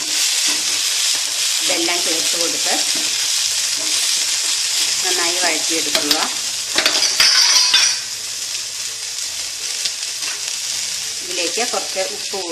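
Food sizzles and hisses loudly in a hot pan.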